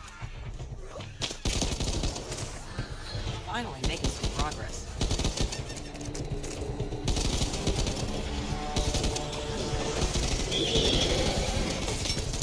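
A zombie snarls and groans nearby.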